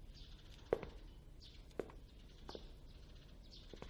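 A knife clicks softly as it peels fruit.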